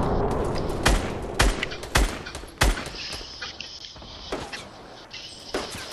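Loud gunshots crack one after another.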